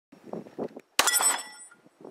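A pistol fires a single loud shot outdoors.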